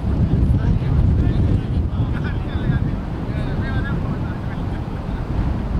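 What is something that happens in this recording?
Men talk to each other at a distance.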